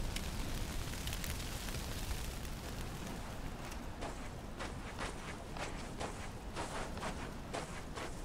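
Footsteps run across sand.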